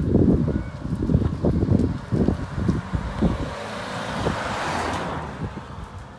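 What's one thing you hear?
A van engine hums as the van drives past close by.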